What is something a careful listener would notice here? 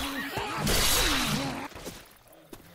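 A knife slashes into flesh with a wet, heavy thud.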